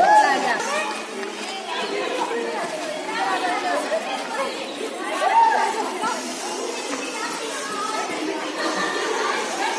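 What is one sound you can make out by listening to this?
Shoes shuffle and scuff on concrete as a group dances.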